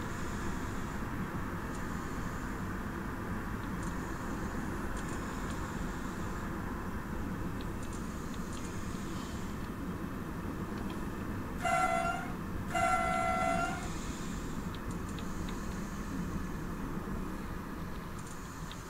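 A train's engine rumbles steadily while the train rolls along the track.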